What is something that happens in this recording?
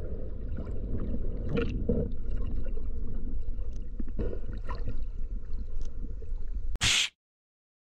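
Water rumbles and swirls in a low, muffled way underwater.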